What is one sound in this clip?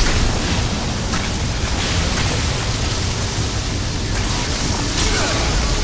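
A deep magical blast rumbles and roars steadily.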